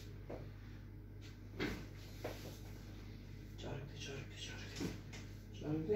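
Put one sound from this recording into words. Hands pat and press on a back with soft thumps.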